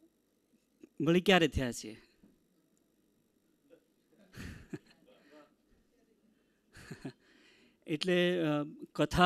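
A middle-aged man speaks calmly into a microphone, with long pauses.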